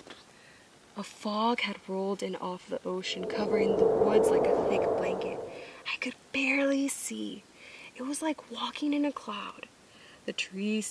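A young woman reads aloud with animation, close by.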